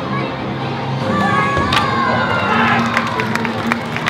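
A wooden board cracks sharply under a flying kick.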